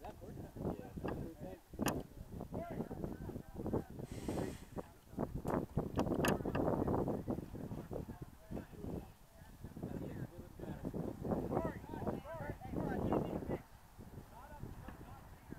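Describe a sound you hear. Young men shout and call to each other across an open field in the distance.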